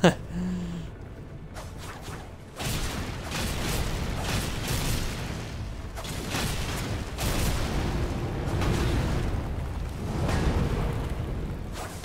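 Fire roars and crackles in bursts.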